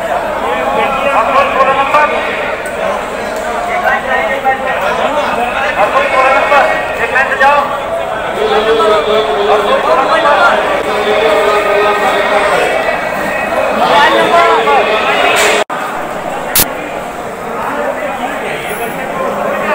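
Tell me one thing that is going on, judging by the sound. Many voices of a crowd chatter in a large echoing hall.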